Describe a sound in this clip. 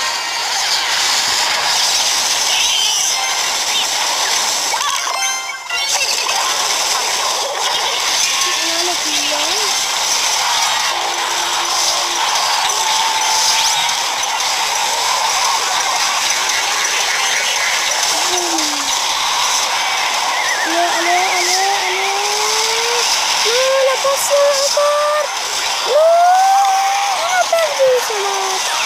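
Video game battle effects clash and thud.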